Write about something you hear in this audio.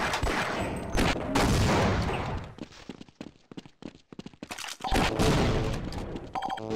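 Grenades explode with loud, echoing booms.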